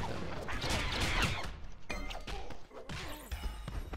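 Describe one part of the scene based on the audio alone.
Heavy blows thud in a fight.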